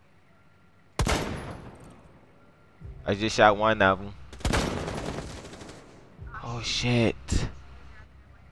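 Loud rifle shots crack, each followed by a short echo.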